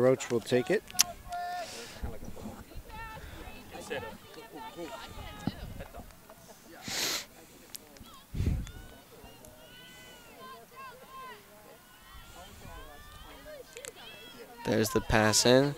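Several people talk quietly in the distance outdoors.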